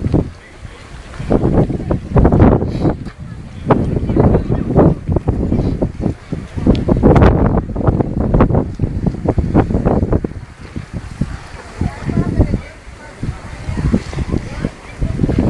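Water splashes and laps against a boat's hull.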